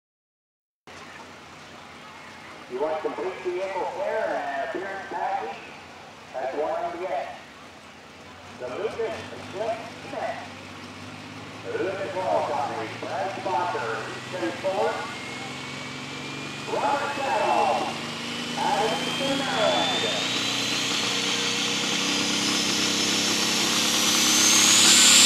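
A tractor engine rumbles loudly and steadily.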